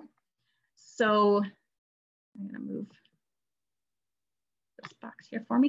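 A woman speaks calmly over an online call, in short bursts.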